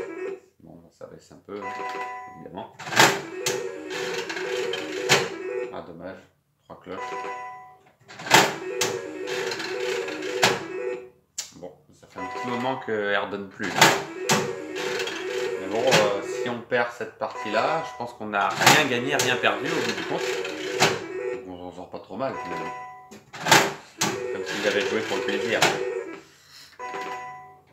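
A slot machine button clicks when pressed.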